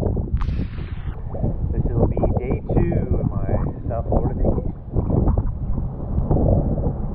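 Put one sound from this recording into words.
Wind rumbles across the microphone.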